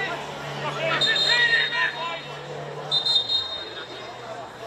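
A referee's whistle blasts twice in short bursts.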